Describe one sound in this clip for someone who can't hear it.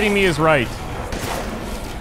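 A gun fires loud shots.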